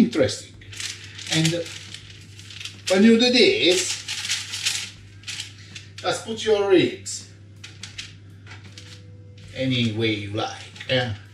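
Baking paper crinkles and rustles under a hand.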